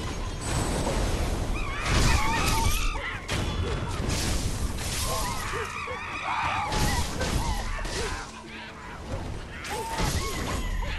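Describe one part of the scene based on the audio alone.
Swords clash and ring in quick, loud blows.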